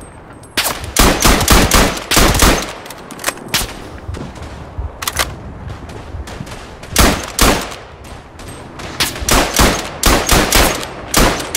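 A rifle bolt clicks as it is worked between shots.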